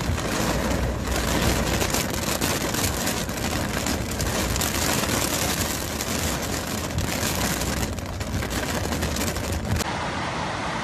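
Heavy rain pounds on a car windscreen.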